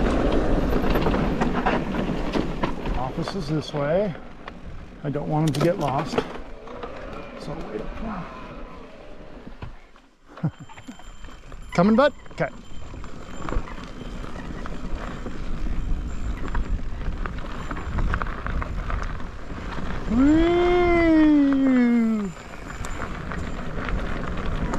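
Bicycle tyres crunch and rumble over a dirt trail.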